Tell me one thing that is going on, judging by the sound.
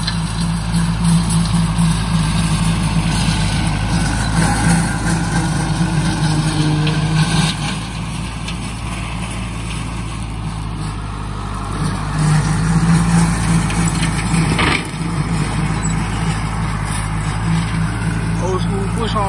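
A rotary mower whirs as it cuts grass.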